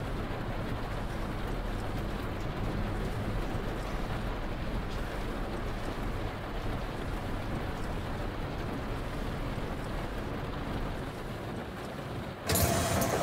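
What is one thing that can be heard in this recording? Rain patters on the windscreen.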